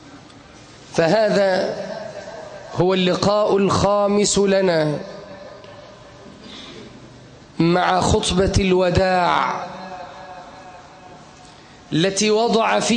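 A man preaches loudly into a microphone, in bursts with pauses, in an echoing hall.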